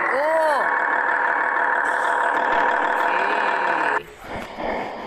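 A truck engine idles with a steady hum.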